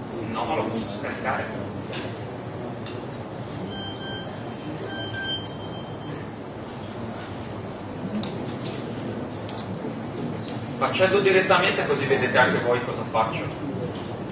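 A young man speaks calmly through a microphone in an echoing hall.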